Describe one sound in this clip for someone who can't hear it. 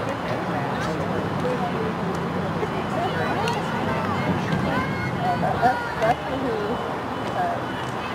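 Young women shout to each other in the distance outdoors.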